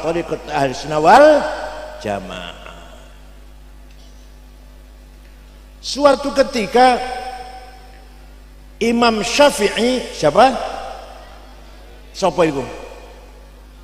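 An elderly man speaks slowly and calmly into a close microphone, with pauses.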